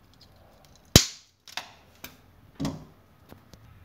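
A screwdriver clicks and scrapes against a wall socket.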